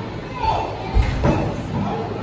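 A wrestler's body thuds heavily onto the ring mat.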